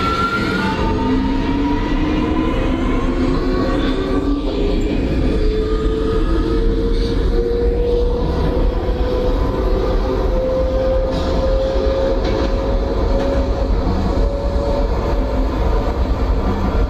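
Train wheels rumble and clatter on rails in a tunnel.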